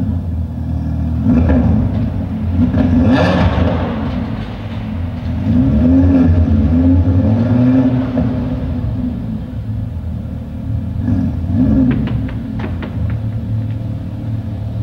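A sports car engine rumbles deeply and revs up and down as the car rolls slowly closer.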